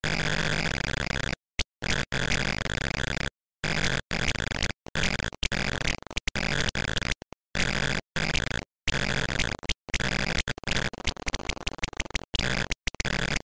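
Buzzy electronic game music and bleeping sound effects play in bursts with short silent gaps.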